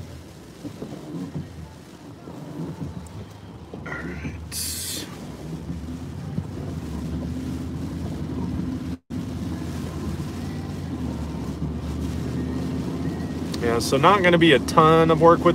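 Windshield wipers swish back and forth.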